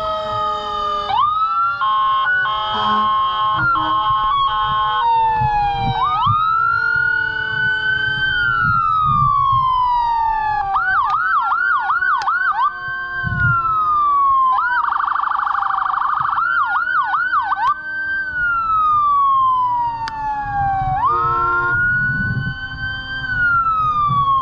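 A siren wails loudly nearby, rising and falling.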